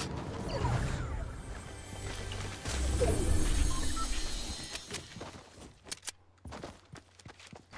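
Quick footsteps patter on grass.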